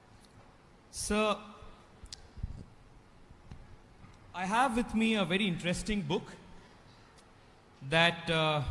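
A young man speaks calmly into a microphone, pausing between phrases.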